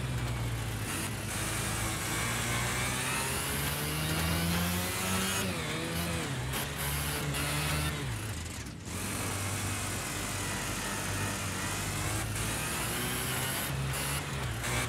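A small kart engine buzzes loudly, its pitch rising and falling as it speeds up and slows down.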